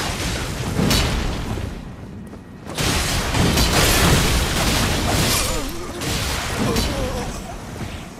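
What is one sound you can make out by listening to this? Blades clash and slash in a fast fight.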